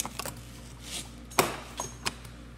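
A plastic cap snaps shut.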